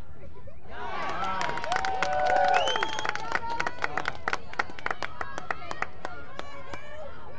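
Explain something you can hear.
Lacrosse sticks clack together in quick knocks.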